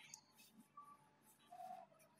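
A marker squeaks faintly across paper.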